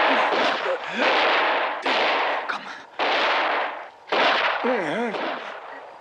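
An elderly man groans in pain close by.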